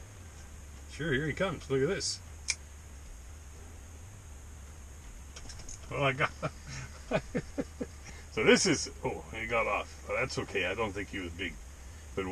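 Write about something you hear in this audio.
An older man talks calmly and close by.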